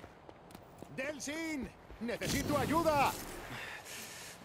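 A young man shouts in strain.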